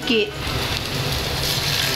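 Onions sizzle in hot oil.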